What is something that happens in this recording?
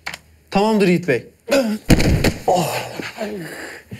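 A body thuds heavily onto a hard floor.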